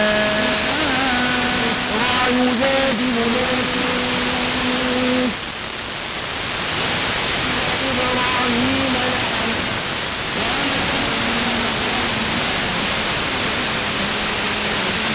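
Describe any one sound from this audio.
Static hisses loudly from a car radio.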